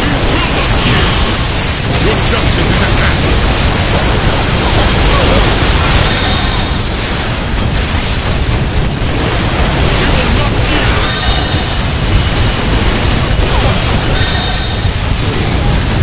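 Fiery energy blasts burst and crackle loudly.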